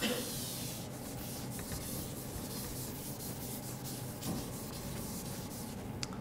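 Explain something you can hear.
Chalk rubs across a blackboard as it is wiped.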